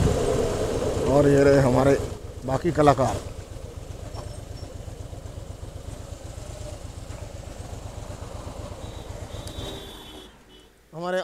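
A motorcycle engine rumbles steadily while riding, then stops.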